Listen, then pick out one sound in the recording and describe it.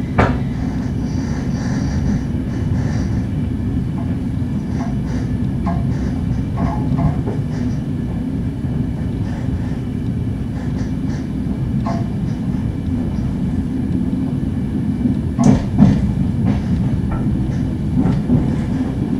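A train's wheels clack and squeal on the rails now and then.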